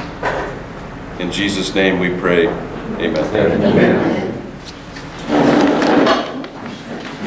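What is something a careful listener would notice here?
A man speaks calmly to a room nearby.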